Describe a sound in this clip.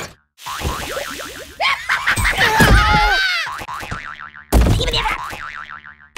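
A jack-in-the-box springs open with a boing.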